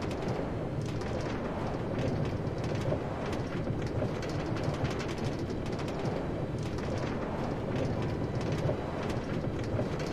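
A minecart rattles steadily along metal rails.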